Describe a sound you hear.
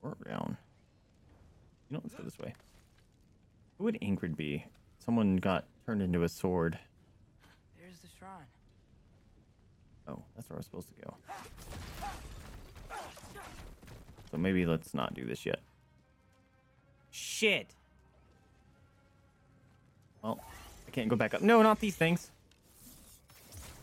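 A young man talks with animation into a microphone close by.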